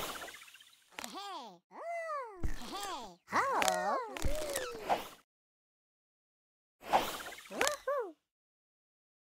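Cartoon kittens mew in high, squeaky voices.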